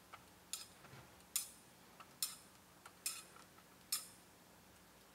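Metal vessels clink sharply a few times in a quiet, echoing room.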